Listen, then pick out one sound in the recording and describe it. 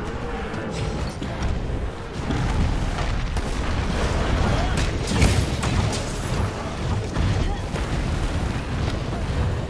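A man speaks through a microphone with animation.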